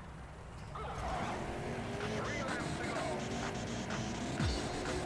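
A race car engine roars and revs.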